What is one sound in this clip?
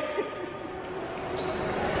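A middle-aged woman laughs loudly close by.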